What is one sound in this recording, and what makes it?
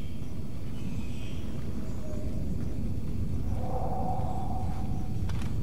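Rats squeak and scurry nearby.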